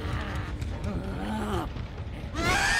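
A beast snarls and growls close by.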